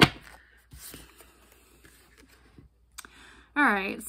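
Playing cards shuffle and rustle close by.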